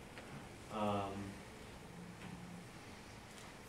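A man speaks briefly in a large room, heard from a distance.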